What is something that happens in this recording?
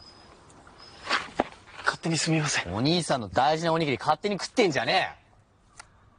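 A young man speaks sharply and scolds, close by.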